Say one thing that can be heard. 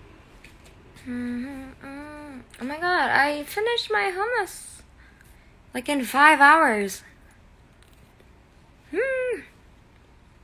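A young woman speaks up close in a lively, sing-song voice.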